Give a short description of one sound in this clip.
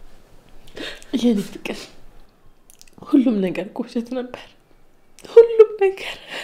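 A young woman sobs and speaks tearfully.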